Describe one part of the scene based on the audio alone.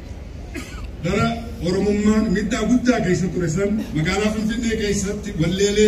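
A man sings loudly through loudspeakers outdoors.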